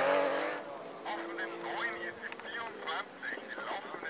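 A distant rally car engine hums as the car approaches.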